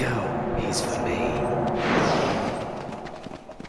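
Sparkles chime and tinkle.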